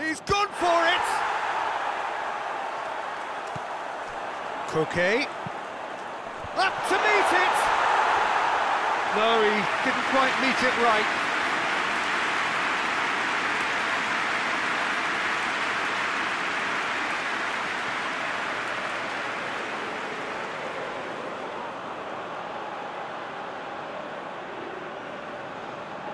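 A large stadium crowd roars, swelling loudly and then slowly fading.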